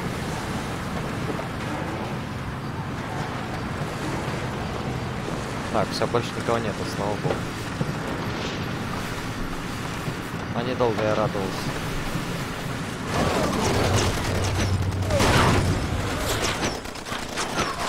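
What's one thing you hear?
A car engine hums steadily as the vehicle drives over a rough road.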